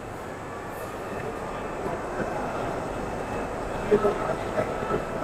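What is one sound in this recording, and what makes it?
Voices of a crowd chatter indistinctly across a large, busy hall.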